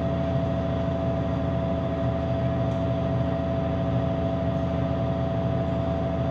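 A large diesel engine runs with a loud, steady drone and hum.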